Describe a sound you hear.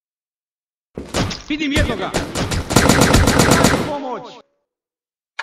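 A rifle fires rapid bursts of shots nearby.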